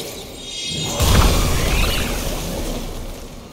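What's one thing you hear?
A large beast slams the ground with a heavy crash.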